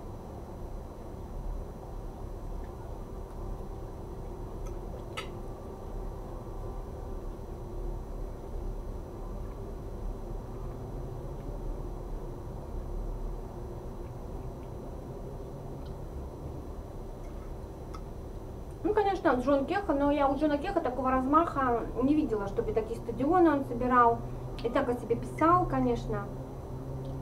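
Cutlery clinks on a plate.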